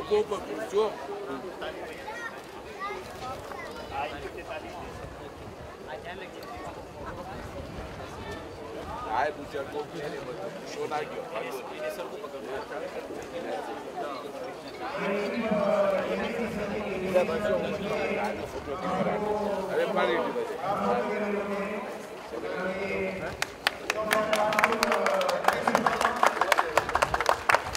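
A crowd of men chatter and talk nearby outdoors.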